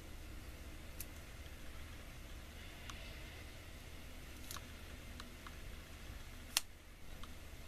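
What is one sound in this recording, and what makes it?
A small plastic stamper clicks and taps softly against a roller.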